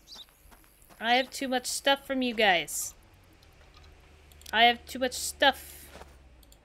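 A young woman talks with animation, close to a microphone.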